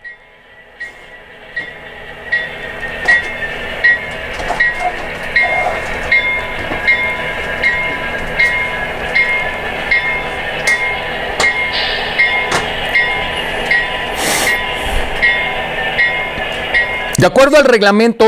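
A model train rumbles along its track, wheels clicking steadily over the rail joints.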